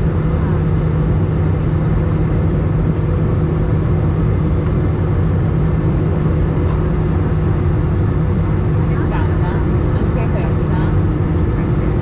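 Jet engines roar with a steady, deep drone inside an airliner cabin.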